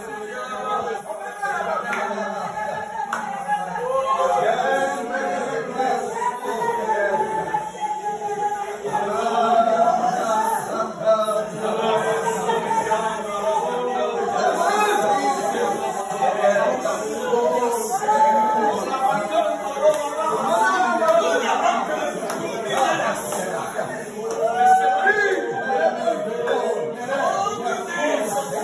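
A man leads a prayer loudly.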